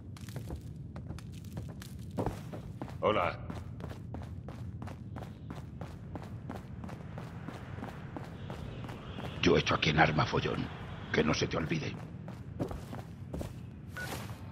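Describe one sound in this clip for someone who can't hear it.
Footsteps tap steadily on a hard floor and stairs.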